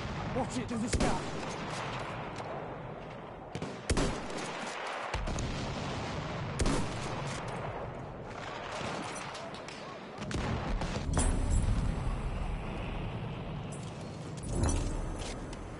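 Rifle shots crack loudly and echo.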